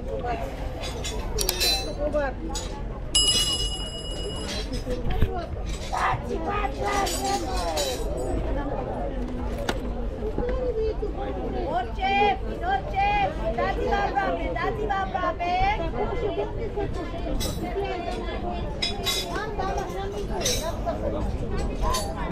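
A crowd murmurs and chatters outdoors all around.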